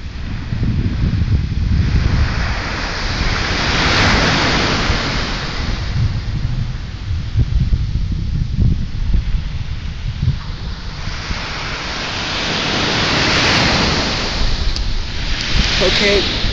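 Small waves wash onto a beach and hiss back.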